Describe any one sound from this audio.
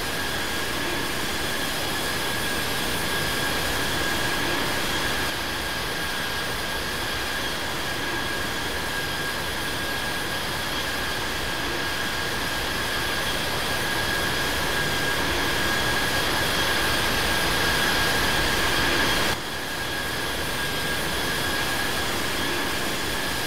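Jet engines roar and whine steadily.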